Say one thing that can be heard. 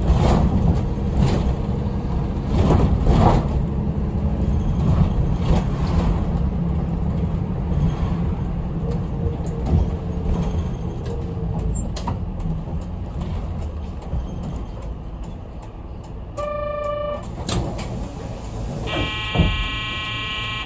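A bus engine rumbles steadily as the bus drives along a street.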